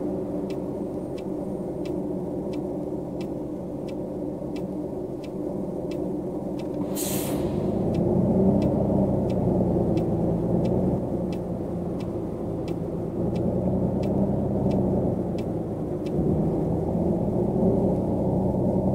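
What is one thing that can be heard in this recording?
A bus engine hums low and grows louder as the bus pulls away.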